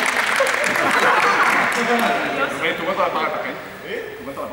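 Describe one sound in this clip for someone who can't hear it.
Children chatter and call out in a large echoing hall.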